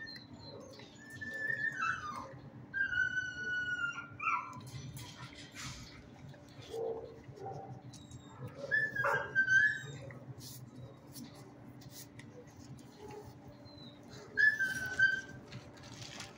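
A dog whines in high, drawn-out cries nearby.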